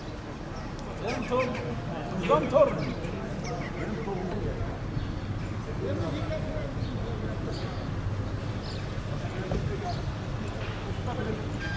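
An elderly man speaks with animation outdoors.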